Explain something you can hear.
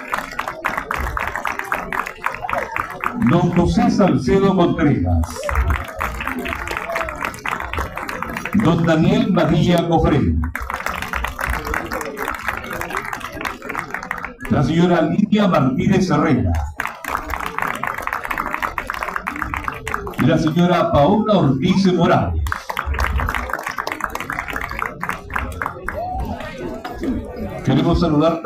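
A group of people sings together outdoors.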